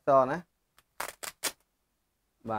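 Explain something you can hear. Plastic film crinkles and peels off a phone.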